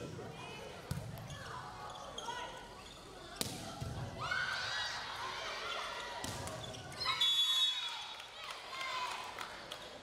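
Young women shout and call out to each other.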